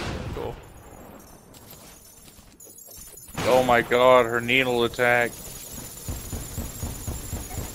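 Rapid game blasts and impacts clatter and burst.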